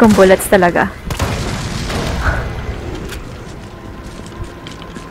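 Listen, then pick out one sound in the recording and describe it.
An explosion booms and fire roars.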